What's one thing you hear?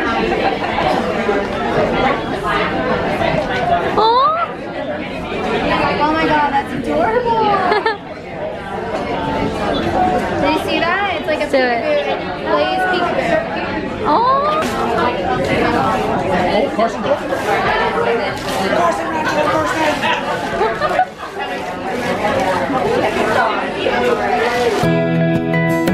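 A crowd of women chatters and laughs in the room.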